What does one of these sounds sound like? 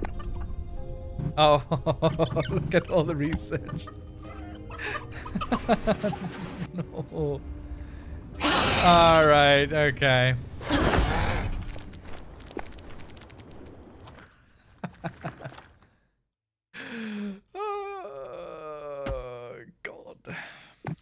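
A man talks into a microphone with animation, close up.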